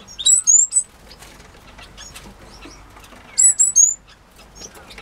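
A small bird sings loud, high, sweeping calls close by.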